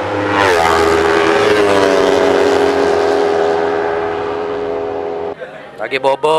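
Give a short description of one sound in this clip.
A motorcycle engine drones loudly at high speed.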